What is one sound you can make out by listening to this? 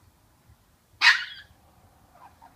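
A small dog gives one sharp, loud bark.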